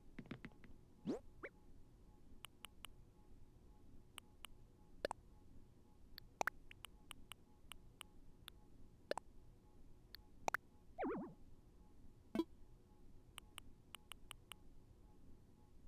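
Short, soft clicks tick quickly as a menu cursor moves from item to item.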